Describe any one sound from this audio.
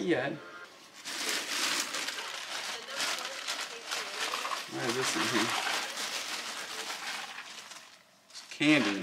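A plastic bag rustles and crinkles as clothes are pulled from it.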